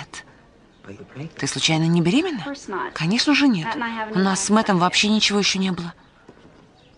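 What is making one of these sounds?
A young woman answers cheerfully close by.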